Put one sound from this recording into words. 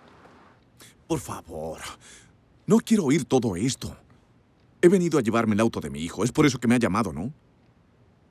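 A middle-aged man speaks insistently nearby.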